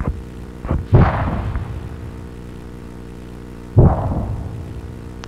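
Explosions boom loudly and rumble away.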